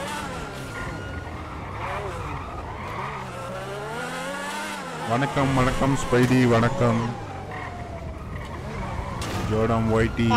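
A sports car engine roars and revs up and down as the car speeds along.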